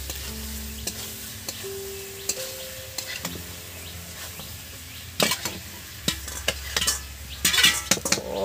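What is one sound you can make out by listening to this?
Pieces of meat tumble and thud into a metal wok.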